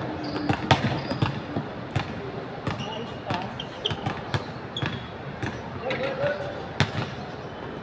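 A basketball hits the rim and backboard.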